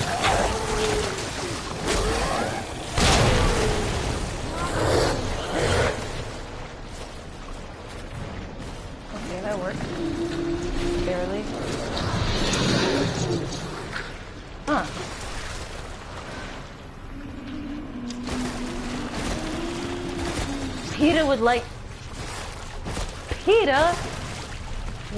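A young woman talks casually through a microphone.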